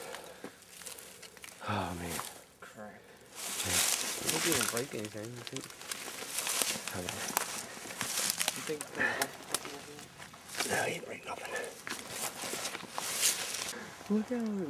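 Dry leaves and brush rustle and crunch close by as someone pushes through undergrowth.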